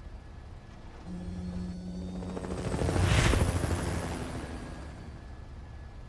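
A helicopter's rotor thumps and whooshes as it flies past, rising and fading.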